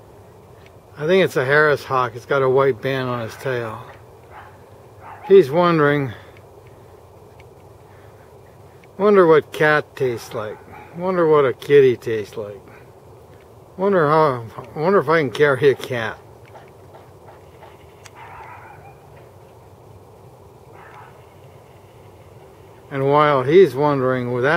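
A bird of prey calls out in loud, rapid, wavering bursts close by.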